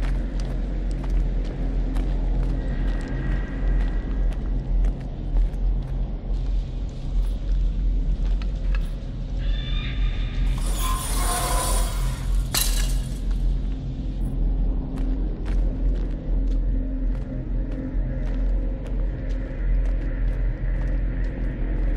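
Footsteps crunch slowly on dirt.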